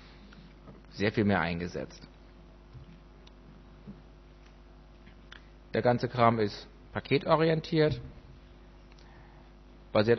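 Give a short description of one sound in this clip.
A man speaks through a microphone in a large hall, with pauses between phrases.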